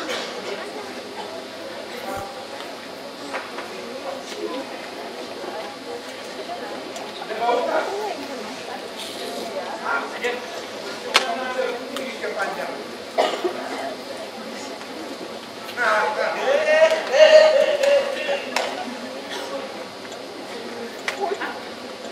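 An audience chatters and murmurs nearby.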